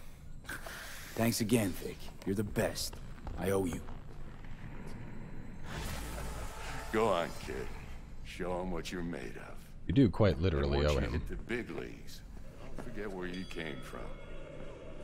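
A man speaks with animation and laughs, close by.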